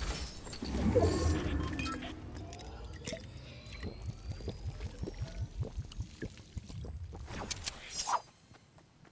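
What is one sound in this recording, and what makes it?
A character gulps down a potion in quick repeated swallows.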